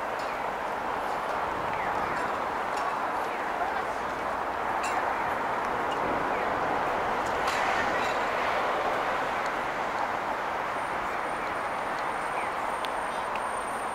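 Distant city traffic hums steadily outdoors.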